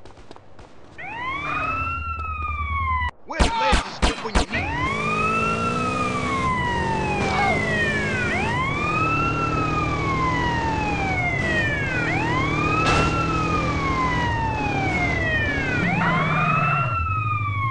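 A police siren wails up and down.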